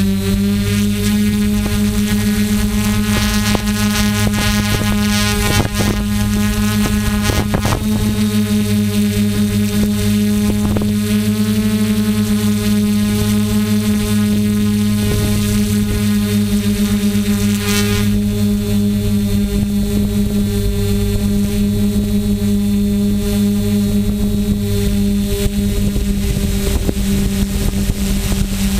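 A drone's motors hum with a steady, high buzzing whine.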